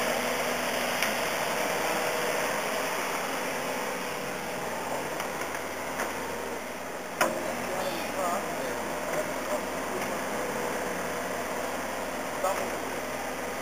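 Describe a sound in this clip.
Rubble clunks and scrapes under a digger's bucket.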